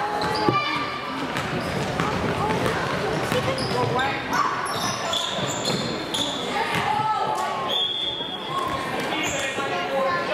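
Young girls shout and call out to one another.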